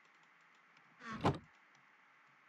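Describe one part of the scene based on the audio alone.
A wooden chest creaks shut.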